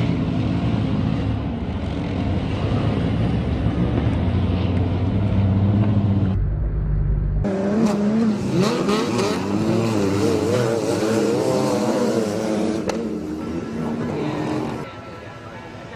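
Racing car engines roar loudly and rev up and down.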